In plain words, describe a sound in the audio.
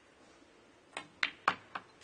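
A cue strikes a snooker ball with a sharp tap.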